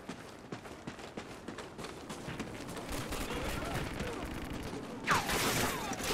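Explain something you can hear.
Footsteps tap quickly on stone.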